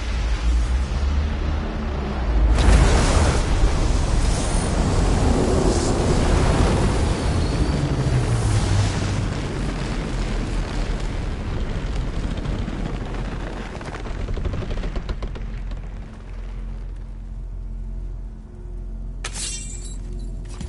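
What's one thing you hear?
A deep, rumbling roar of magical energy swells, then slowly fades.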